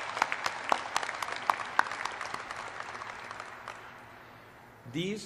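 An audience applauds in a large echoing hall, then the clapping fades.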